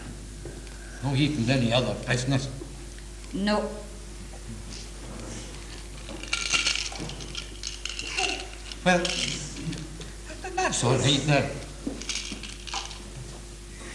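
An elderly man speaks slowly.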